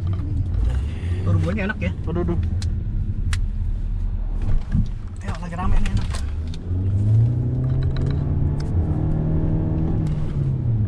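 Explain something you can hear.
A car's engine hums steadily from inside the cabin.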